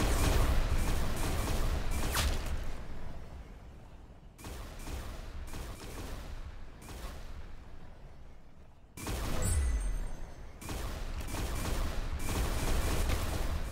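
A laser rifle fires sharp zapping shots.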